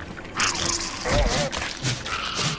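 A spider creature screeches and attacks.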